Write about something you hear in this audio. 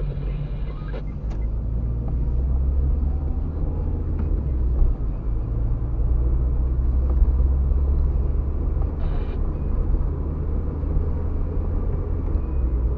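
Tyres roll and rumble on the road.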